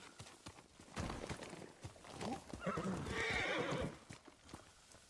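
A horse's hooves pound on the ground as it gallops up.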